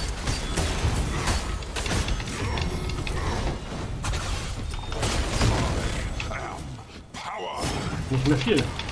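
Magic blasts whoosh and crackle in a video game fight.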